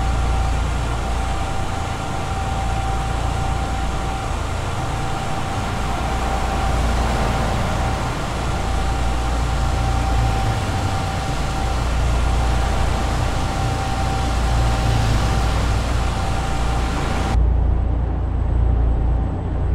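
A truck engine hums steadily as it drives along a highway.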